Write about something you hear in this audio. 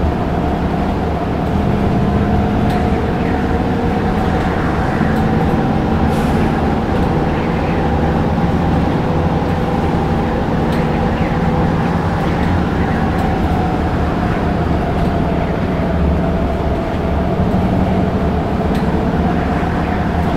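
A diesel city bus engine drones as the bus cruises along a road.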